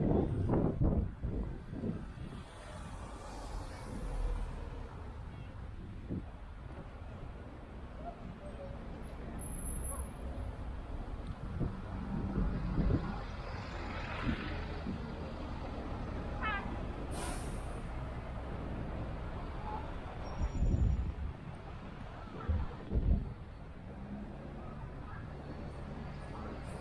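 Outdoors, city traffic rumbles steadily along a street.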